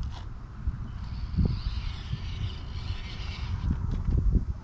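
A small electric motor of a toy truck whirs as it drives.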